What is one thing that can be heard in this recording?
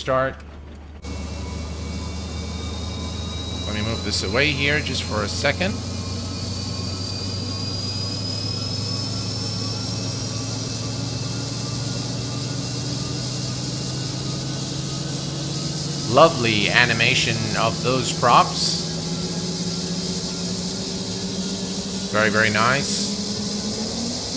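An aircraft engine hums steadily and slowly rises in pitch.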